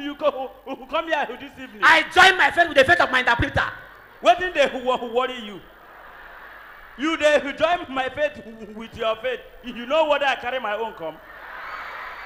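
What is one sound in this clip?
A man speaks animatedly through a microphone on a stage.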